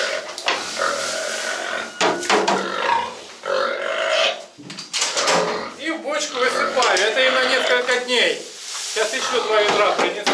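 Dry feed pours from a bucket into a trough with a rushing hiss.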